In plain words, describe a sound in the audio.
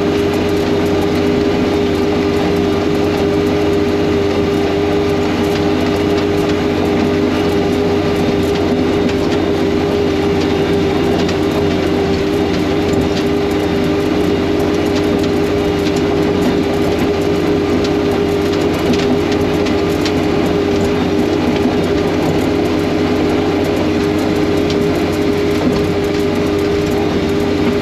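A snow blower roars as it throws snow.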